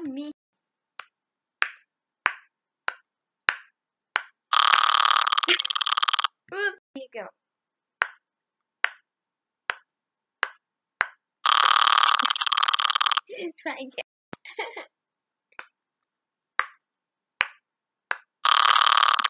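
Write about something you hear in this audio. Silicone bubbles of a toy pop with soft clicks, one after another.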